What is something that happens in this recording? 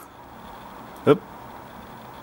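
A phone gives a short beep.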